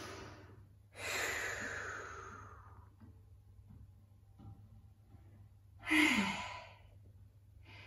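A woman breathes out slowly and deeply.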